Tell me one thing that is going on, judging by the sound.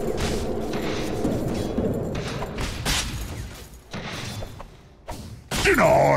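Weapons clash with sharp hits during a game battle.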